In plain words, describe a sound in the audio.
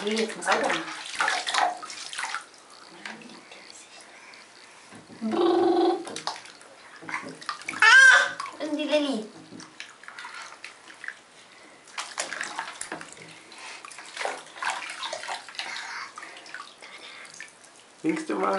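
Water splashes and trickles in a bathtub.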